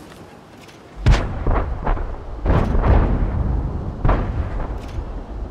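A tank cannon fires with heavy booms.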